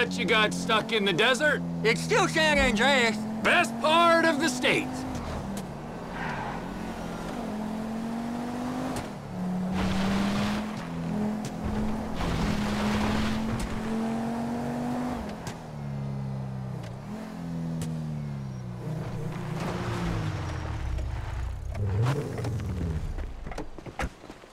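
A sports car engine hums and revs while driving, then winds down.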